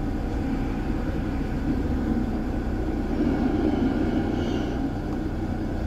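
Another tram rumbles past close by.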